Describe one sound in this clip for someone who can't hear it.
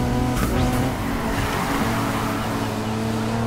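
Tyres screech as a car drifts through a bend.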